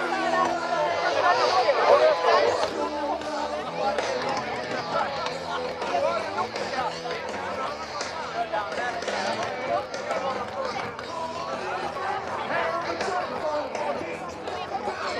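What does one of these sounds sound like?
Loud live music plays through large outdoor loudspeakers.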